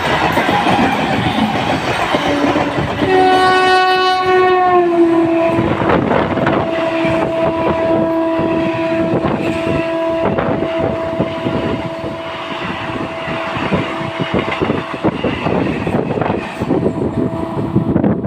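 A train rumbles past close by with wheels clattering over the rail joints.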